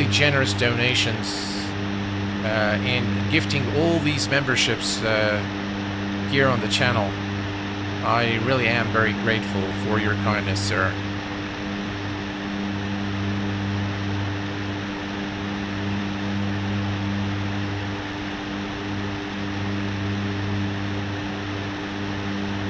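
A steady engine drone hums throughout.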